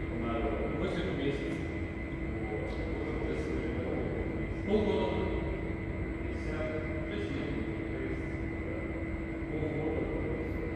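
Badminton rackets strike a shuttlecock with sharp pops, echoing in a large hall.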